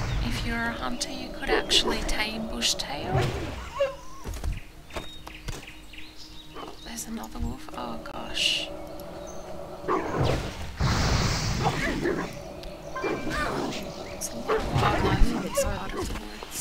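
Magic spells whoosh and crackle in a fight.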